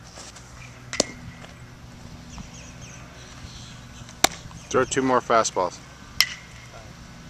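A baseball smacks into a leather glove with a sharp pop.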